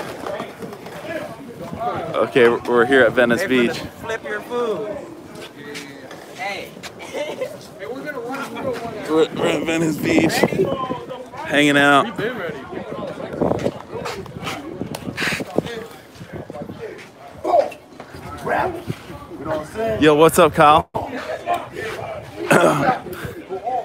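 Men talk loudly and with animation close by, outdoors.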